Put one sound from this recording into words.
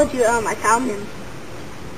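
A young boy talks nearby.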